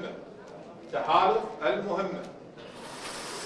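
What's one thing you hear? A young man speaks loudly into a microphone in an echoing hall.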